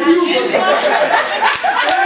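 A young woman claps her hands.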